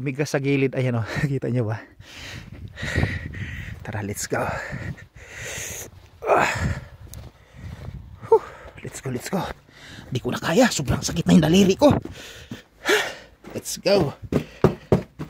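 A man talks close to the microphone with animation.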